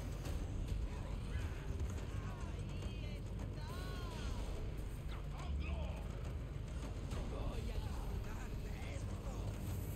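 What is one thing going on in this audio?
Footsteps crunch on wooden planks and dirt.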